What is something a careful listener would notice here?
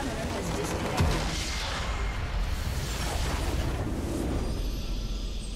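A loud explosion booms as a structure collapses.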